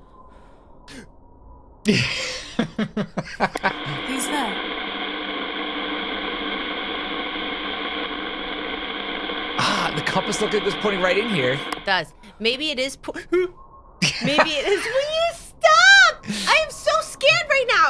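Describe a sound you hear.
A young woman talks excitedly close to a microphone.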